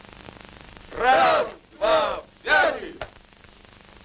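A man shouts loudly in long drawn-out calls.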